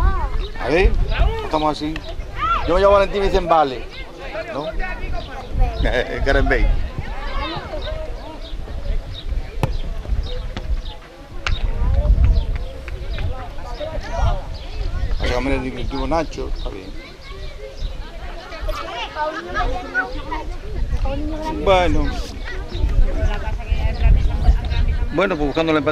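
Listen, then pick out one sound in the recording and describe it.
Children shout and call out across an open outdoor field.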